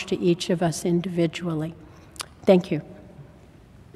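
An elderly woman speaks calmly through a microphone in a large echoing hall.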